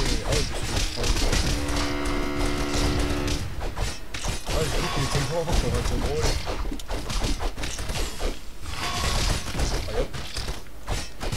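Swords clash and clang in a fast, busy fight.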